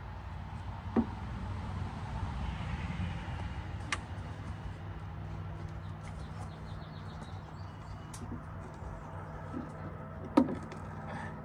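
Wooden boards knock against a metal boat hull a few times.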